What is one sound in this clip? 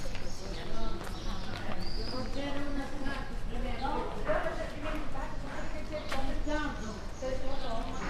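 Two young women talk casually close by.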